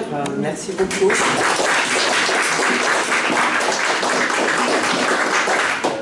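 A small audience applauds.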